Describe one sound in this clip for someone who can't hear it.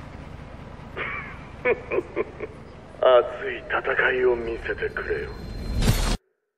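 A man speaks smoothly and theatrically through a loudspeaker.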